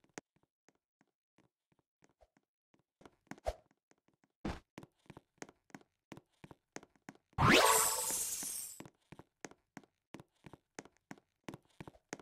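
Game footsteps patter quickly on hard ground.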